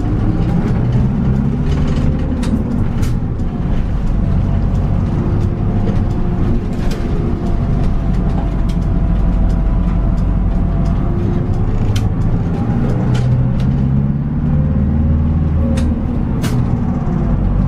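The fittings of a bus interior rattle and click as the bus moves.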